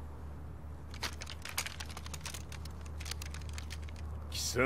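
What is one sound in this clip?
Heavy boots march in step.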